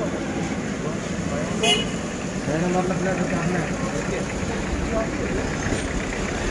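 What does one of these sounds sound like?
A man talks nearby in a calm voice, outdoors on a street.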